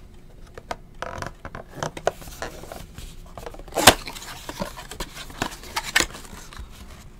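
Cardboard packaging rustles and tears as a box is opened by hand.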